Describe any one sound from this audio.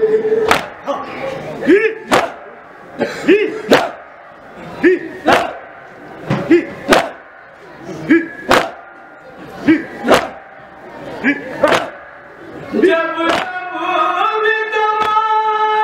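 A man chants loudly into a microphone.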